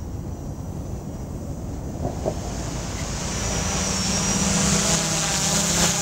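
A drone's rotors buzz steadily, growing louder as it comes closer.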